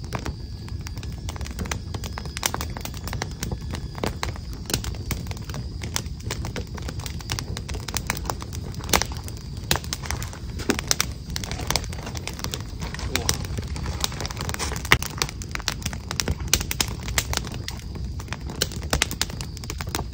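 Small objects click and tap close by as they are handled.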